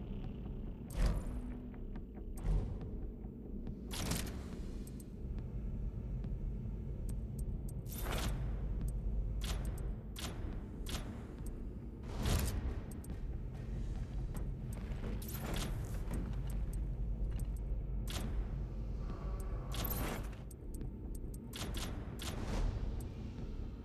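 Short electronic menu clicks and whooshes sound now and then.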